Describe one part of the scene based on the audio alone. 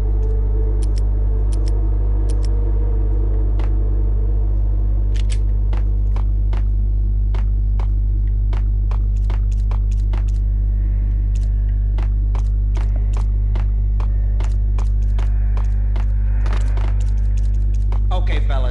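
Footsteps tap quickly on a hard floor in an echoing space.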